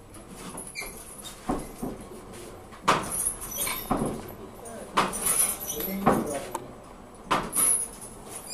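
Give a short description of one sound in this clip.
A hammer strikes hot metal on an anvil with sharp ringing clangs.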